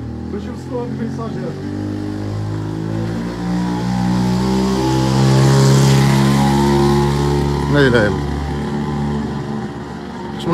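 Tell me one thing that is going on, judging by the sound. A motorcycle engine hums steadily and then fades as it rides away.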